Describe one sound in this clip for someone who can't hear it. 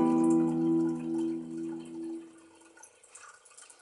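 A fiddle plays a sustained note that slowly fades away.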